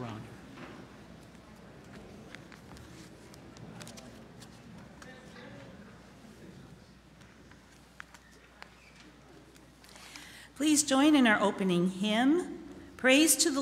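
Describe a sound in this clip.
An elderly man reads aloud calmly through a microphone.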